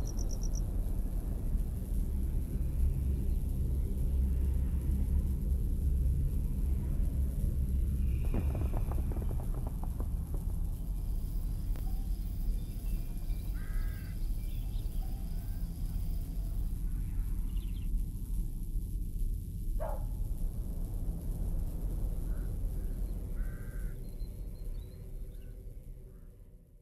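Crows caw now and then in the distance.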